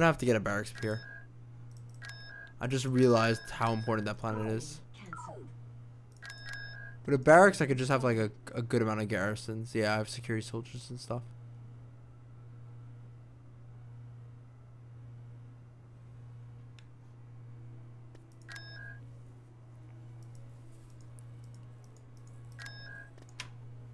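Short electronic beeps sound as game menus are clicked.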